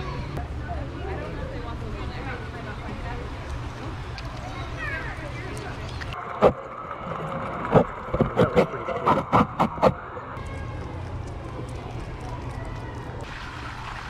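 A lemur chews food with wet, smacking sounds close by.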